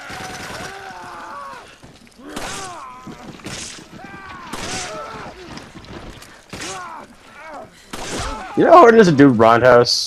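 Gunshots fire in quick single bursts.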